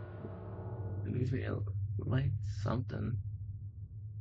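A young man speaks briefly, close to a microphone.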